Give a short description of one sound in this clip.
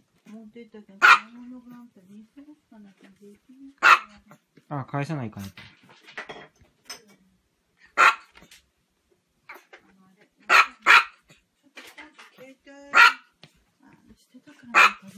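A small dog barks sharply and repeatedly, close by.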